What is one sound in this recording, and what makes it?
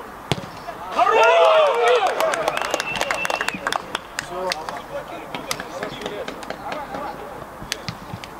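Men shout and cheer excitedly on an outdoor pitch.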